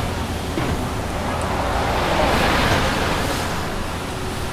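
A bus drives past close by.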